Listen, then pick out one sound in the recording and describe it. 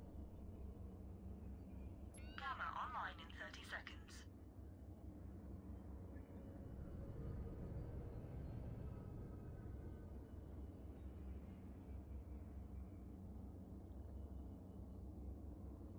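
A spacecraft engine drones low and steady.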